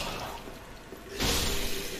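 A sword swooshes through the air.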